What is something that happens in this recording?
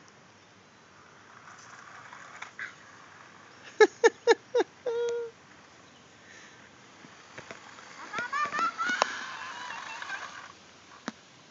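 A toy car's motor whirs as it drives on pavement.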